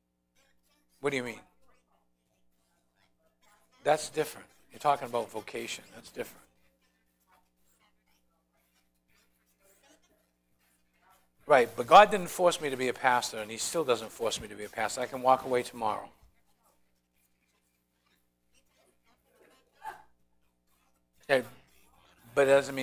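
An older man lectures in a large room, with pauses between phrases.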